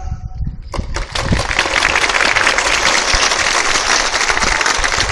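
A large crowd cheers and chants loudly in an open stadium.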